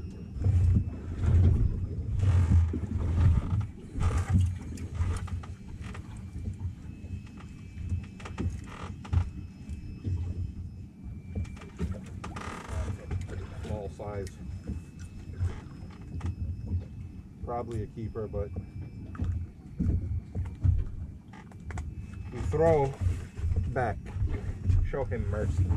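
Wind gusts against the microphone outdoors on open water.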